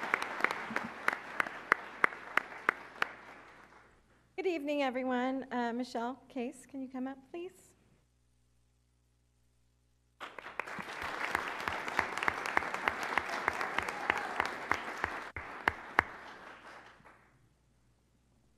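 A crowd claps and cheers in a large room.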